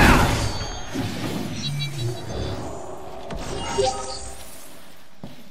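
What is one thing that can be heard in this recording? Blows and scuffles of a fight thud sharply.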